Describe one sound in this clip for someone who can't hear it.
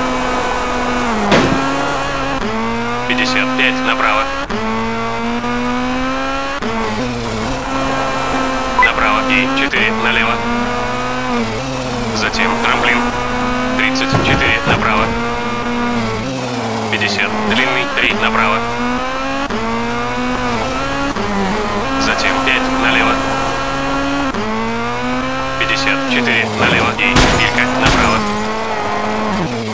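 Tyres skid and scrabble on loose gravel.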